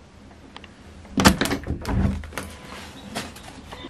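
A door rattles and swings open.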